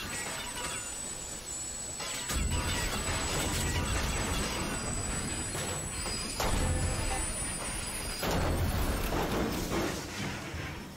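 Strong wind gusts and roars outdoors.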